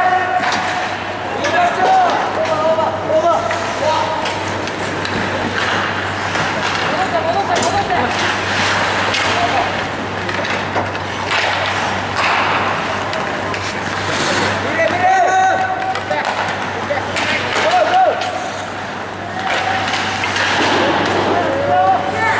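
Skates scrape and carve across the ice in a large echoing rink.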